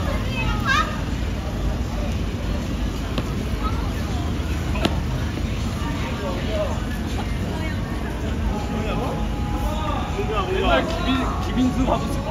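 Young men and women chatter at a distance.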